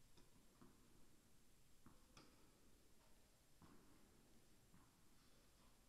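Footsteps tap on a hard court in a large echoing hall.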